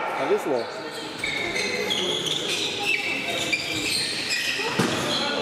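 Male handball players shout to each other in an echoing hall.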